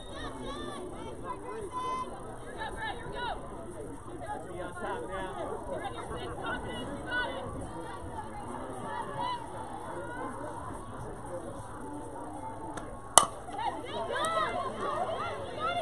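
Young women call out and cheer from a distance outdoors.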